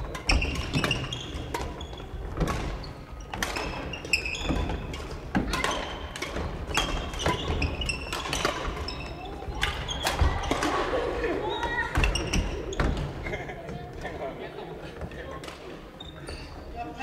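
Badminton rackets smack shuttlecocks in a large echoing hall.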